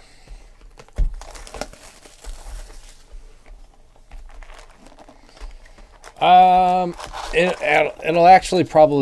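A cardboard box is slid open and handled.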